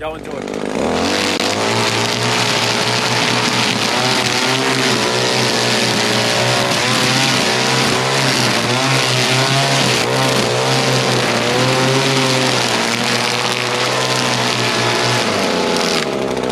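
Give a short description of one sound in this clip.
A string trimmer motor whines steadily while cutting grass.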